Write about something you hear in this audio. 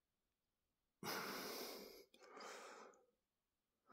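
A hand strokes a cat's fur, rustling softly against bedding.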